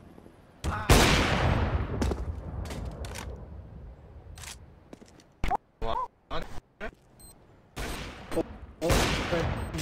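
A sniper rifle fires with a booming crack.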